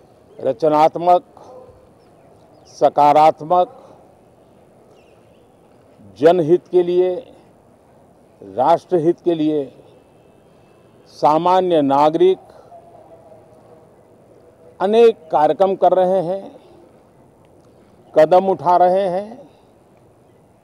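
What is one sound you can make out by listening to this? An elderly man speaks calmly into a microphone close by, in short phrases with pauses.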